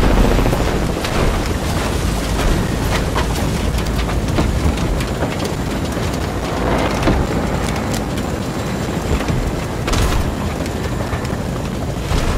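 A helicopter's rotor whirs loudly nearby.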